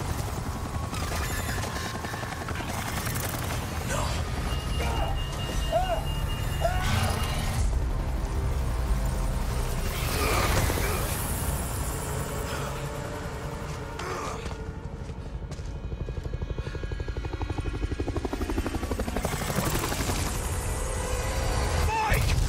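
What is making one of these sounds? A helicopter's rotor blades chop loudly.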